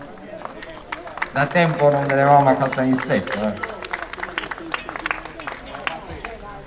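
A crowd applauds nearby.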